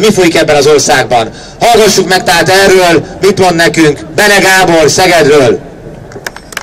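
A man speaks forcefully into a microphone, heard through loudspeakers outdoors.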